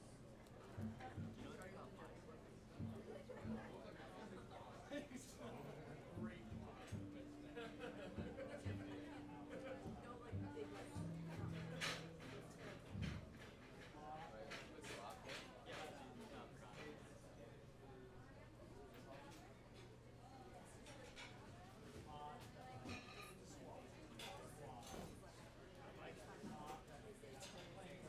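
Drums and cymbals are played with a light, brushing swing.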